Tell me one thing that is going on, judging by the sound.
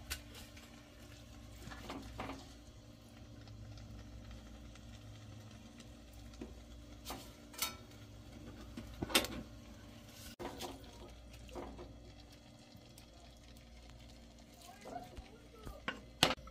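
A spatula scrapes and taps against a metal pot.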